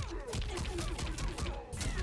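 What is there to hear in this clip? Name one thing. An energy blast crackles and bursts.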